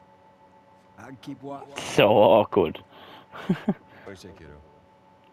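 A guitar is strummed.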